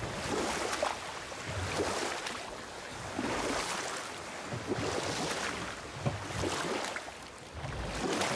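Water laps and rushes around a moving boat.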